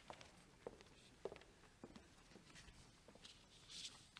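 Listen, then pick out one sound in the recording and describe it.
Footsteps knock faintly on a wooden floor in a large hall.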